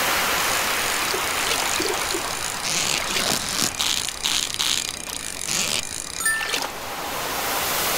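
A fishing reel whirs and clicks rapidly.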